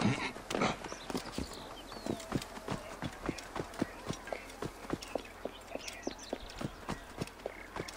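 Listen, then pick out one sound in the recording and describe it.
Footsteps run quickly and evenly on hard ground.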